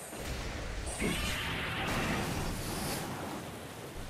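A beam weapon blasts with a loud roaring rush.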